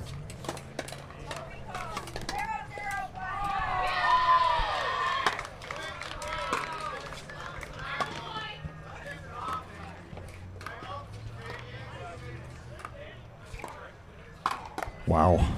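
Paddles strike a plastic ball in a quick rally outdoors.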